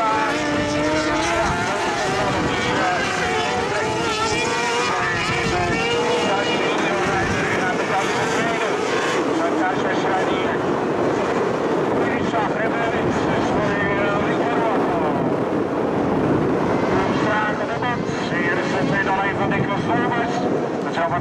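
Racing engines rev and roar loudly, rising and falling in pitch.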